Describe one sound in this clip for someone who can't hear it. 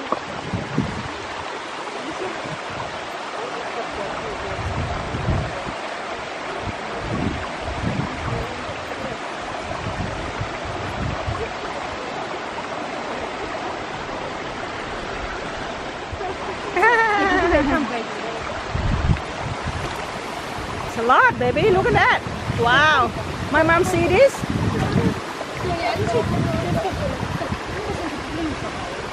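A shallow stream trickles and gurgles steadily.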